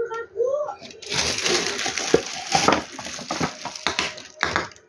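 Plastic wrap crinkles and rustles as it is handled.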